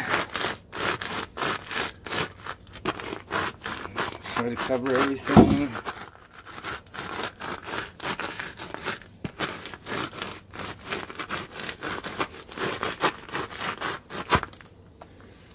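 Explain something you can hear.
A boot scuffs and crunches over gritty granules on concrete.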